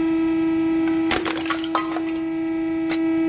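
A ceramic figurine cracks and breaks apart.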